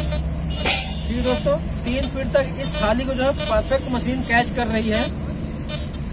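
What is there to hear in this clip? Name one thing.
A metal detector beeps with a wavering tone as it sweeps over metal.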